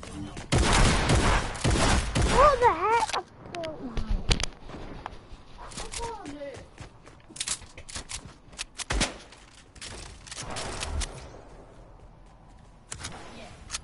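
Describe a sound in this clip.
Gunshots crack repeatedly in a video game.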